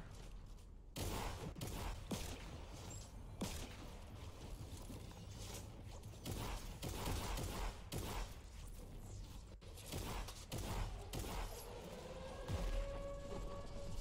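A pickaxe strikes a wall again and again.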